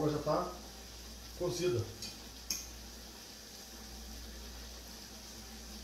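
A spoon stirs food in a saucepan.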